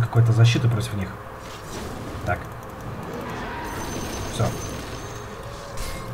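Magic spells crackle and whoosh during a fight in a video game.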